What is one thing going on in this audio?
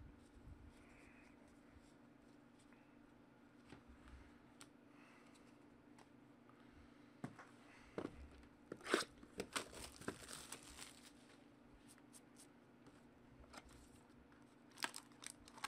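Trading cards rustle and click as hands shuffle them.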